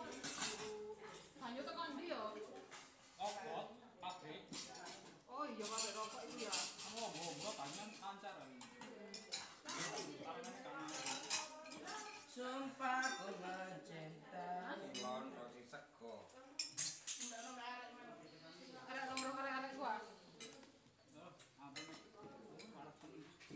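Several women and men talk and chatter nearby.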